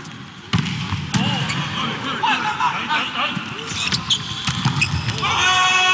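A volleyball is hit hard during a rally.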